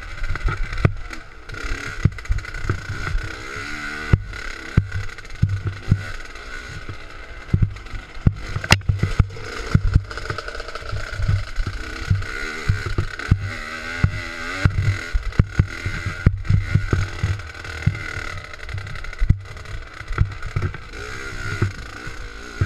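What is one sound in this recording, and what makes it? A dirt bike thumps and rattles over rough ground.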